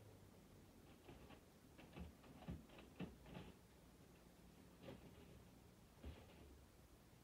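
Objects clunk and knock as a person handles them nearby.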